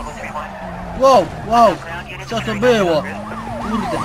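A car crashes into a police car with loud bangs.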